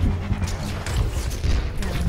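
An energy beam weapon fires with a crackling hum.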